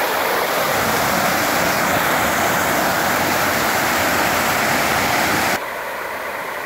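Water pours down and splashes loudly into a pool, close by.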